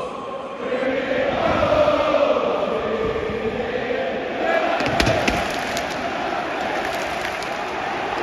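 A large stadium crowd sings and chants loudly in a wide, echoing space.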